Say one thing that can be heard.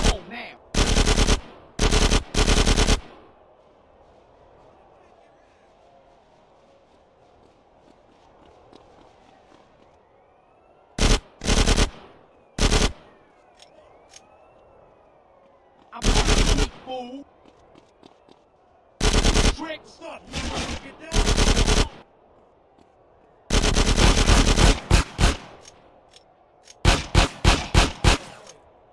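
Bursts of automatic gunfire ring out loudly.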